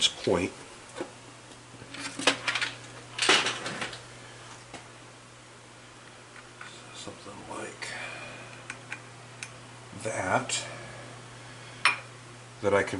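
Metal parts clink and rattle on a metal plate.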